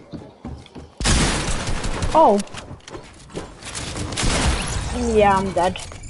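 Loud gunfire and crashing blasts ring out in a video game.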